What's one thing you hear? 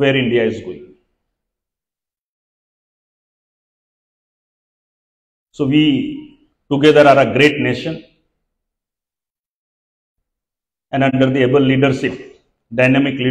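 A middle-aged man gives a speech through a microphone and loudspeakers, speaking slowly with long pauses.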